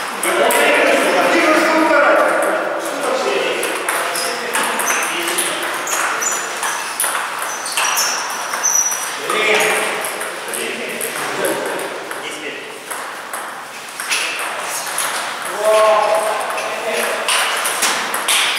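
Men talk in an echoing room.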